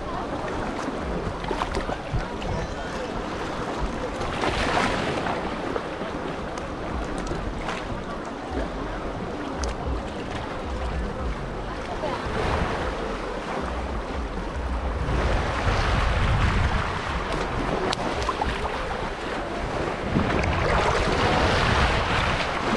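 Small waves lap gently against rocks at the water's edge.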